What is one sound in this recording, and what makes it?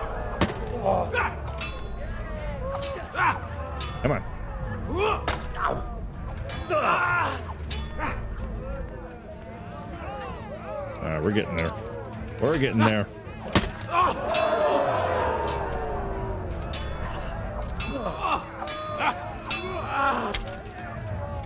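Steel swords clash and clang in a fight.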